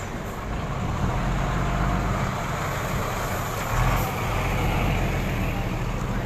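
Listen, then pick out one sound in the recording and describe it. A heavy truck rumbles past close by.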